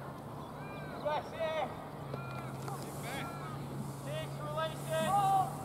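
Young players shout across an open field in the distance.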